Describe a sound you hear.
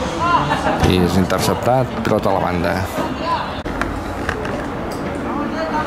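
Young male players shout to each other outdoors.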